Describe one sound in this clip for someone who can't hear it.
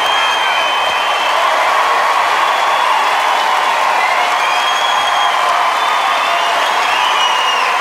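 A large crowd claps and cheers loudly in a big echoing hall.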